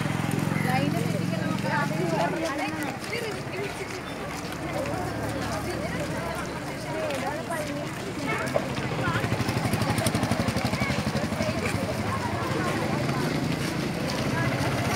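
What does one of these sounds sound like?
A crowd of girls chatter and call out outdoors.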